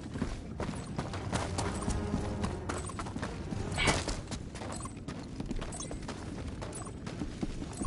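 Heavy boots crunch on gravel.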